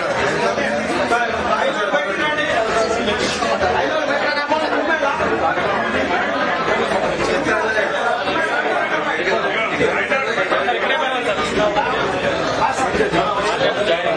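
A crowd of men and women talk and call out all at once, close by.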